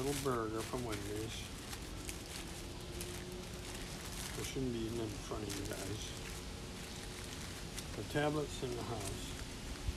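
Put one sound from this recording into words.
A plastic bag crinkles in a man's hands.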